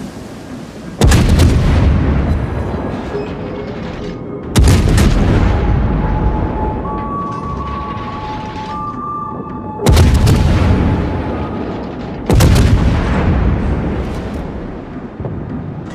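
Heavy ship guns fire in loud, deep booms that rumble away.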